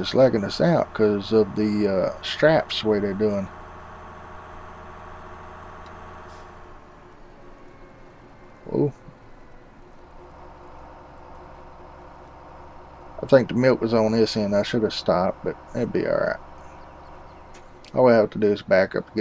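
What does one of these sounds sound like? A truck engine hums steadily at low speed.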